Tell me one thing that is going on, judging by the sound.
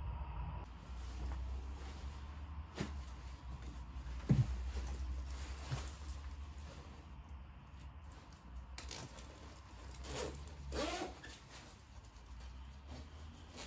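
Clothing rustles.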